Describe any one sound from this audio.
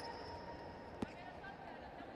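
A volleyball is struck hard.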